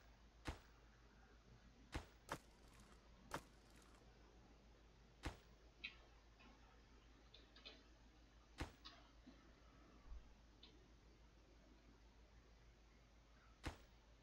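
Short sharp interface clicks sound now and then.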